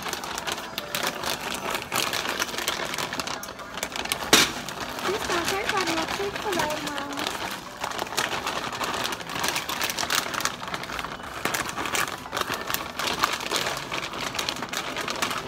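A plastic snack bag crinkles and rustles as hands handle it.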